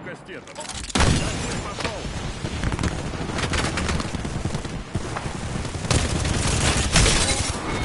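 Rapid gunfire crackles loudly and continuously.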